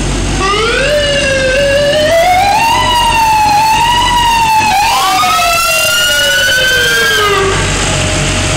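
A siren wails up and down close by, then cuts off.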